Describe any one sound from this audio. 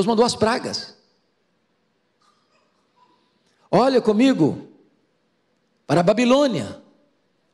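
A middle-aged man preaches with feeling into a microphone, in short phrases with pauses.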